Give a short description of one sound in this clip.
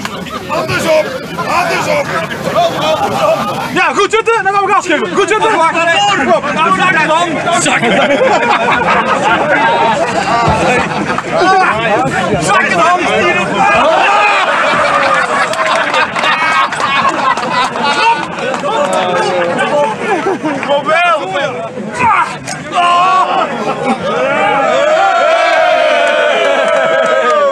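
A man shouts with excitement.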